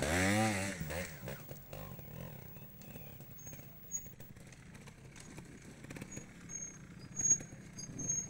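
A motorcycle engine putters quietly in the distance.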